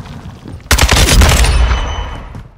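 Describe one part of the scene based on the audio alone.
A rifle fires a short burst of loud shots indoors.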